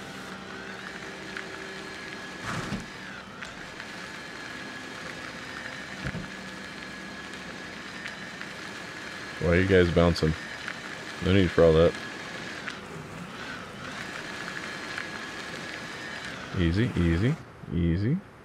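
A small vehicle's electric motor hums steadily.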